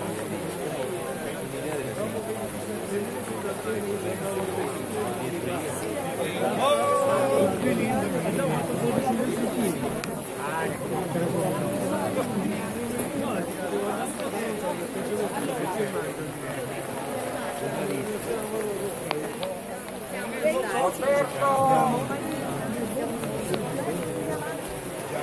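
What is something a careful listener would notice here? A large crowd of men and women chatters while walking outdoors.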